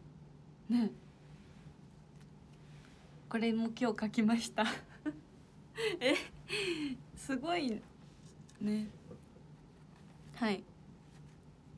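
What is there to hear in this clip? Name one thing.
A young woman speaks cheerfully and animatedly, close by.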